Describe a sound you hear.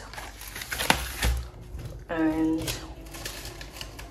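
A cardboard box is set down on a hard counter.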